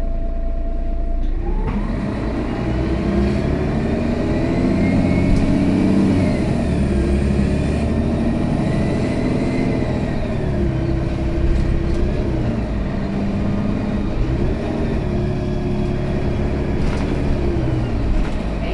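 A bus engine hums and whines as the bus drives along.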